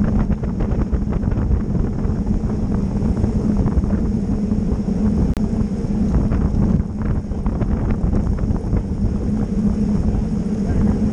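Bicycle tyres hum on pavement.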